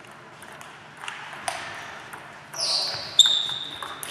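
A table tennis ball clicks sharply back and forth on the table and bats in an echoing hall.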